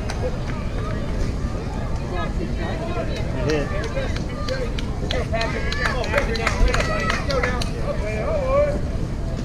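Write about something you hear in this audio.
A crowd of spectators chatters nearby outdoors.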